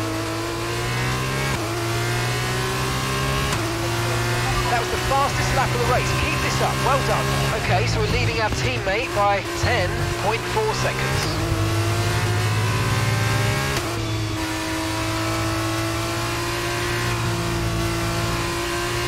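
A racing car engine roars at high revs, rising in pitch as the car speeds up.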